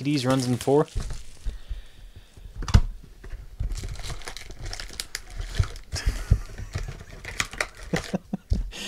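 Foil card wrappers crinkle and rustle as they are torn open.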